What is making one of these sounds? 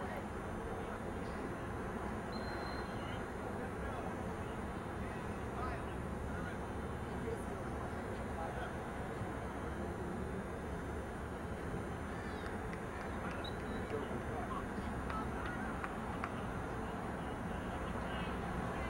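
Young men call out to each other across an open field, faint and distant.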